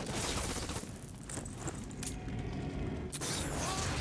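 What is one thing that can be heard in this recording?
A rocket launcher fires.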